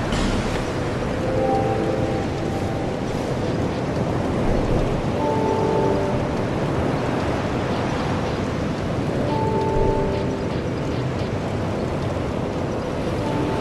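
Soft electronic menu chimes sound now and then.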